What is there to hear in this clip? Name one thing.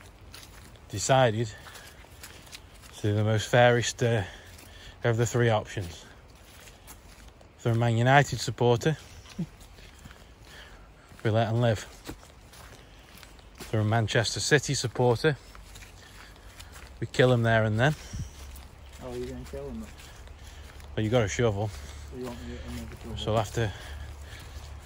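A man speaks close by in short bursts.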